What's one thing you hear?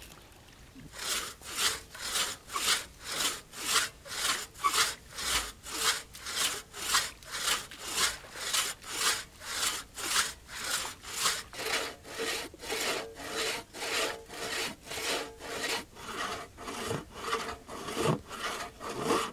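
A hand saw rasps back and forth through wood in a steady rhythm.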